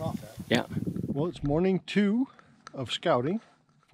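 A middle-aged man talks close by, calmly.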